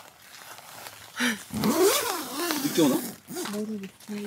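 Tent fabric rustles as it is pulled and handled.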